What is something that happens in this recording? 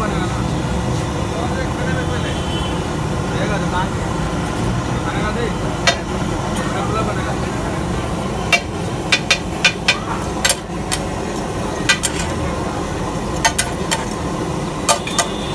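Bread rolls sizzle steadily on a hot griddle.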